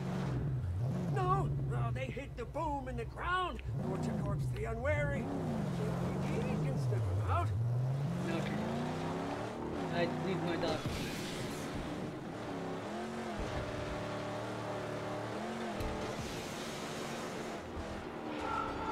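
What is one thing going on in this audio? Tyres skid and squeal as a car slides.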